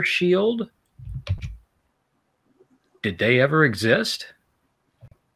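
A middle-aged man talks with animation over an online call.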